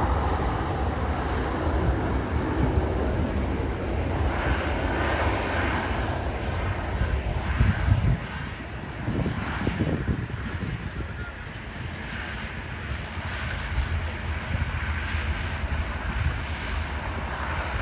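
A propeller plane's engines drone steadily as it taxis nearby.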